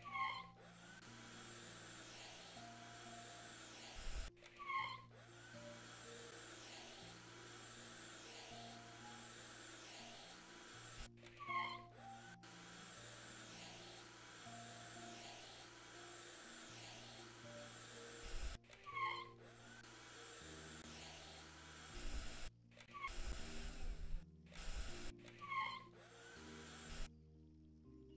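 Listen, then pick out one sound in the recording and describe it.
A squeegee squeaks and swishes across window glass.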